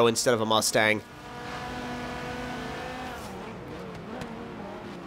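A race car engine roars at high speed, then drops in pitch as it slows.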